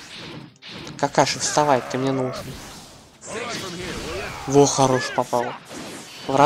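An energy blast whooshes and crackles.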